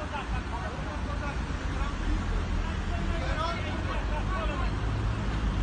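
Several men shout and argue loudly outdoors at a distance.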